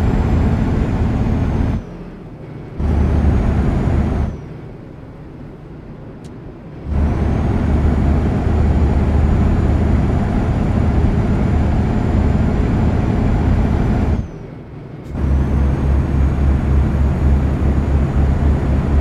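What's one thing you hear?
A truck engine drones with a deep, steady rumble that drops away briefly a few times.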